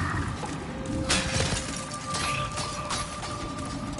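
A heavy sword strikes with a loud crash.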